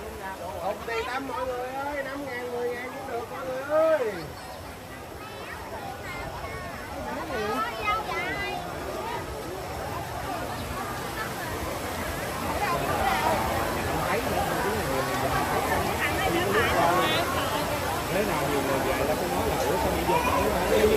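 A crowd of men, women and children chatters all around outdoors.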